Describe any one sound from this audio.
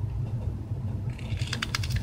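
A knife blade scrapes along a piece of wood.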